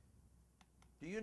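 An older man begins to speak calmly into a close microphone.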